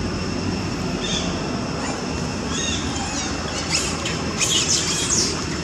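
Young monkeys squeal shrilly.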